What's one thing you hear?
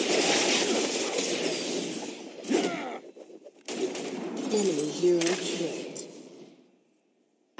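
Magic blasts crackle and whoosh in a fast battle.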